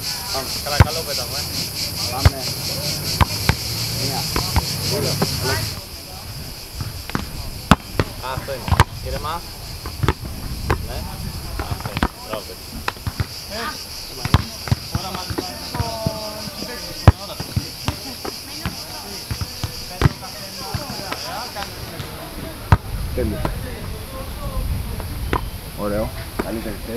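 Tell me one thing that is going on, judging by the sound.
A football is kicked and headed with hollow thumps.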